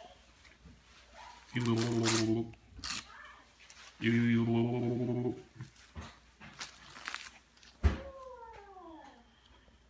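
Paper crinkles in small hands.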